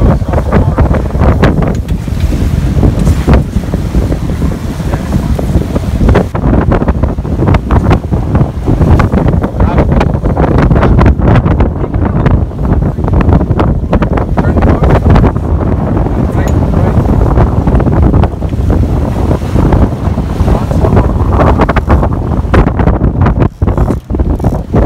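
Waves splash and churn behind a moving boat.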